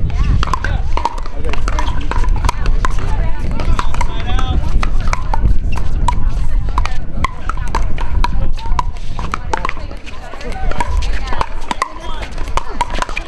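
Paddles pop sharply against a plastic ball, back and forth.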